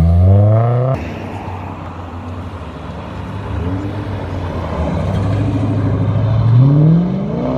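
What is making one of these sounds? A muscle car engine rumbles deeply nearby.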